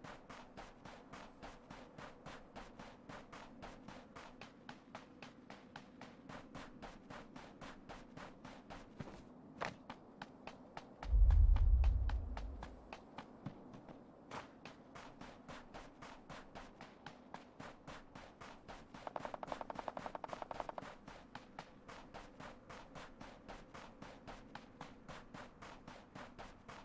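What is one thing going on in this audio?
Footsteps crunch quickly and steadily through snow.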